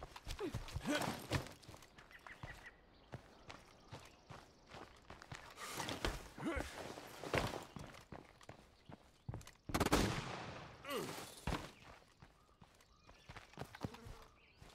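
Footsteps tread on the ground and wooden boards.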